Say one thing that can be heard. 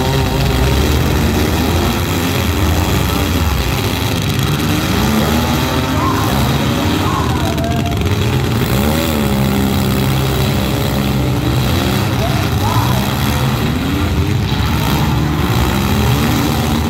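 Loud car engines roar and rev outdoors.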